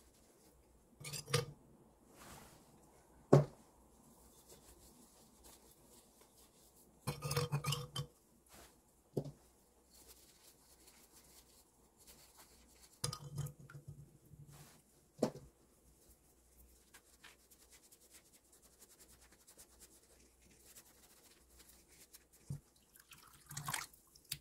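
Water is poured over a pot and splashes.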